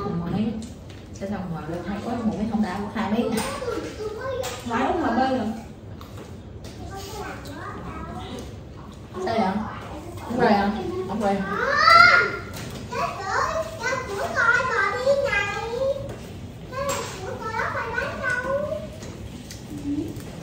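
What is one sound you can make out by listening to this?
Several women talk and laugh nearby in a lively conversation.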